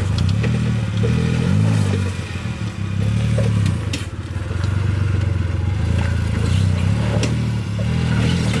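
A small off-road vehicle's engine revs and labours in low gear.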